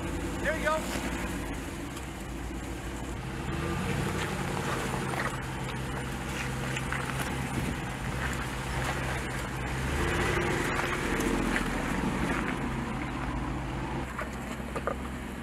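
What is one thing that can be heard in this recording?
Tyres crunch and scrape over rocks and gravel.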